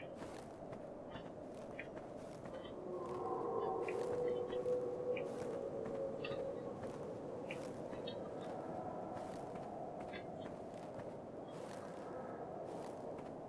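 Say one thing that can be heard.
A fist strikes leafy bushes again and again, with short rustling crunches.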